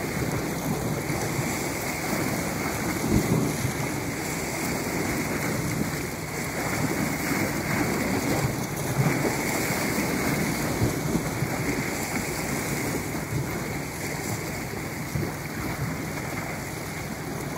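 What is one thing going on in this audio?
Waves splash against rocks close by.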